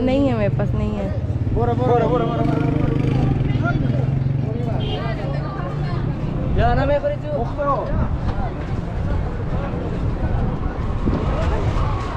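Traffic rumbles steadily along a busy street.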